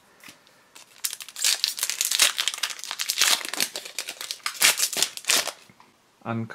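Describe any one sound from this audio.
A foil card wrapper crinkles and tears as it is pulled open.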